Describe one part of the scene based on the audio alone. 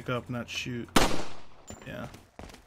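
A pistol fires a single loud shot with a short ringing echo.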